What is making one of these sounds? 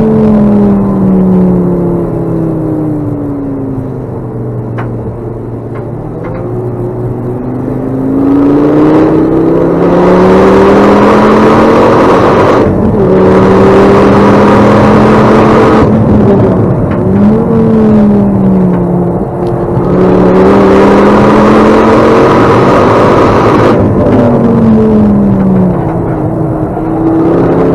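Tyres rumble on the track.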